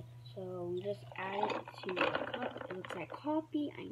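Milk pours into a glass over ice.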